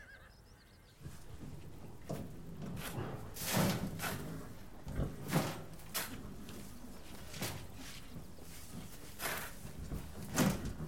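A shovel scrapes and flings loose grain or sawdust in repeated strokes.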